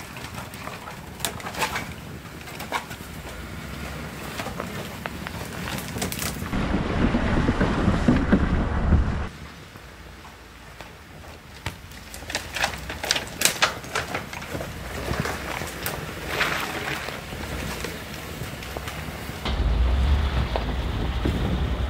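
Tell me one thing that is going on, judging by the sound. Tyres crunch over snow.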